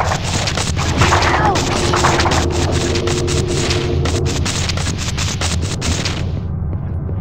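A water gun sprays with a loud hiss.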